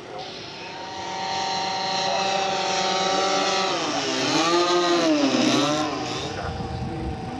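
A model plane roars past low and its engine pitch drops as it passes.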